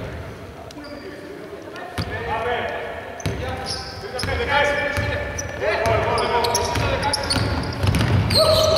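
Sneakers squeak sharply on a hard court in a large echoing hall.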